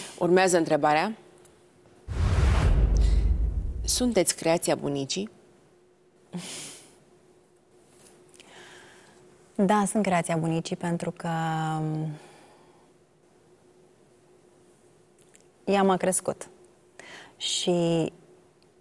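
A young woman speaks softly and with feeling into a close microphone.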